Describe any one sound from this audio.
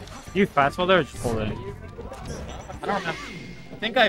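Video game fight sounds play and end abruptly.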